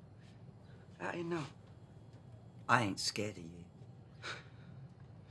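A young man speaks tensely and threateningly, close by.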